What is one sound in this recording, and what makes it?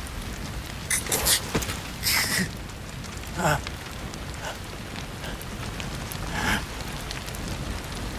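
A man groans in pain and gasps close by.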